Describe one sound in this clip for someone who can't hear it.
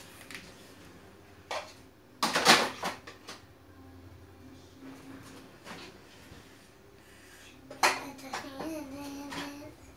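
Plastic dishes knock together as they are stacked in a drawer.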